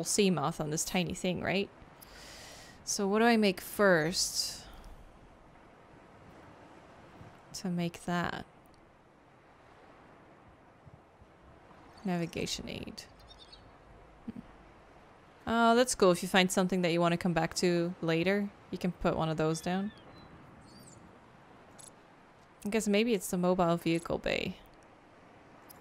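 A young woman talks casually into a close microphone, in short bursts with pauses.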